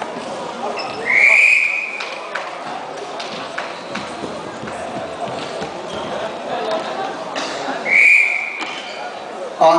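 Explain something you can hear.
A referee blows a short shrill whistle.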